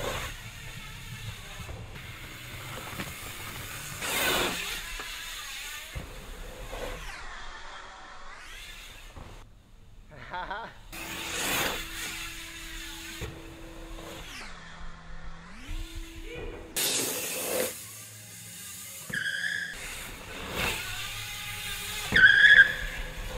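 Bicycle tyres whoosh over packed dirt jumps.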